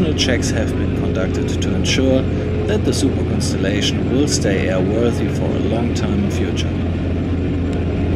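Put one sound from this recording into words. A man speaks over a headset intercom.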